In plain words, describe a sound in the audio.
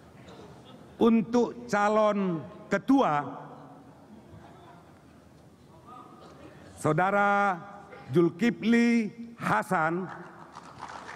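An elderly man speaks slowly and formally into a microphone in a large echoing hall.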